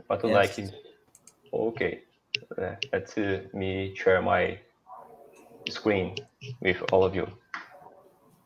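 A man speaks over an online call, with pauses.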